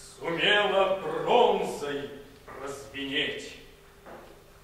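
A man sings in a full, trained voice in an echoing hall.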